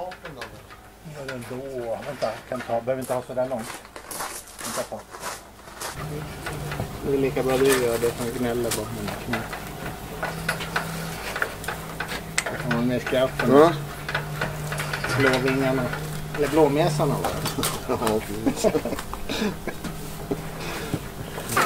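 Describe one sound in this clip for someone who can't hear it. Elderly men talk calmly with each other, close by.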